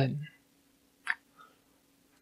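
A short electronic click sounds.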